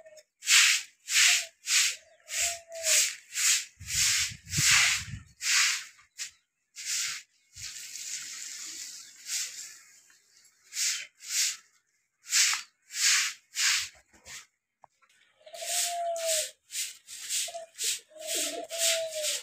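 A stiff broom sweeps a concrete floor in quick, rasping strokes.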